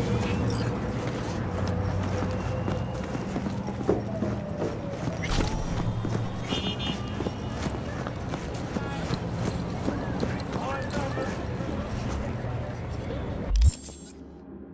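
A busy city street hums with distant traffic.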